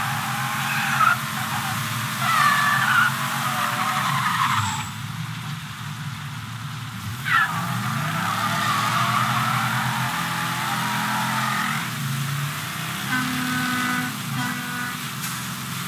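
A car engine roars and revs steadily.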